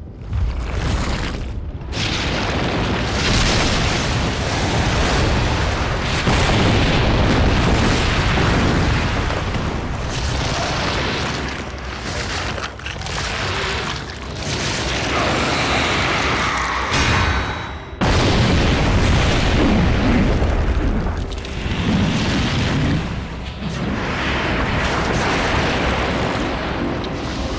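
A huge creature roars and growls loudly.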